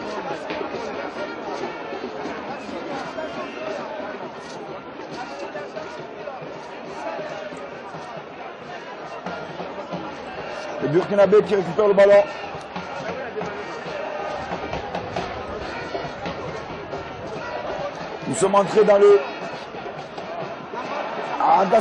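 A stadium crowd murmurs and cheers steadily in the distance.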